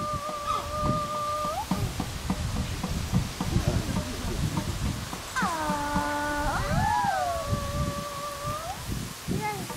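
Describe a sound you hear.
A woman cries out in long, sustained wailing tones.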